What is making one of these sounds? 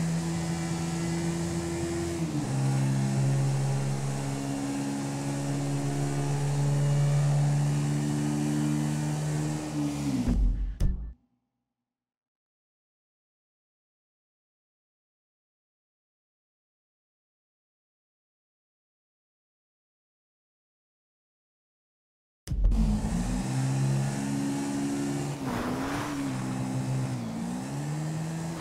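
A motorbike engine hums steadily and shifts pitch as it rides.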